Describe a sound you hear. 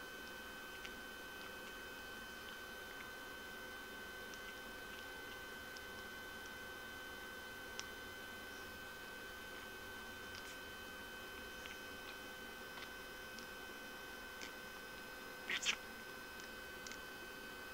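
A budgie's beak clicks softly as it nibbles at a fingertip.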